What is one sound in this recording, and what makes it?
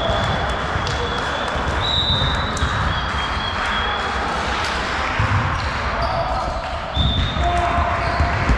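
Young men call out to one another across the court.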